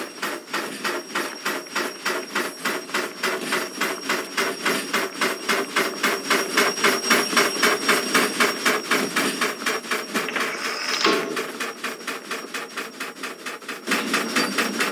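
A steam locomotive chuffs rhythmically as it moves along.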